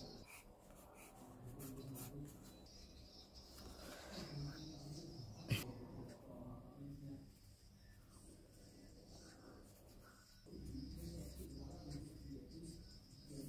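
A graphite pencil scratches across sketchbook paper.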